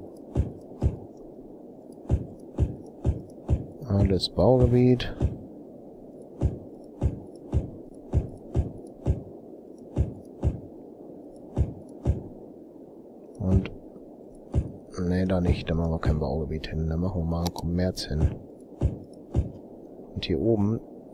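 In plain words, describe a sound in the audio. Short game clicks sound again and again as zones are placed.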